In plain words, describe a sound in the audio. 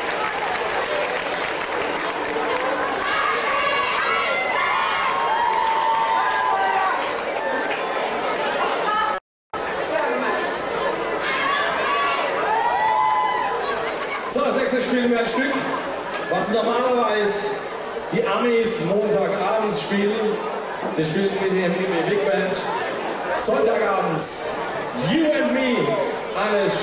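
A big band plays brass and saxophones over loudspeakers, outdoors.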